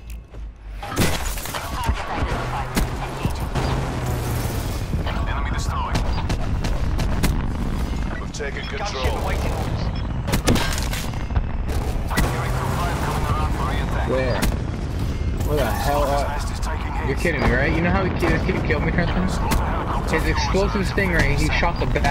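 Heavy cannon shots boom with explosions below.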